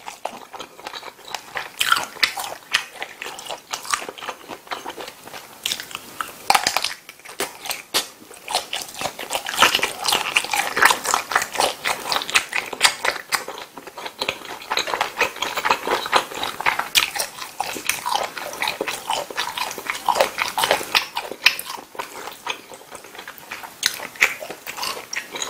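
A man chews food wetly and close up.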